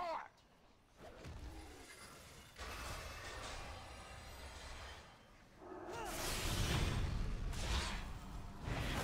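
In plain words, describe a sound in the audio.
Magic spells burst and crackle with whooshing blasts.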